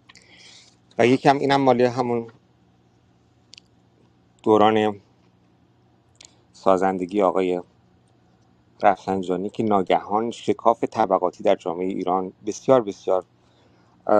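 A man speaks calmly over a phone line, in short bursts with pauses.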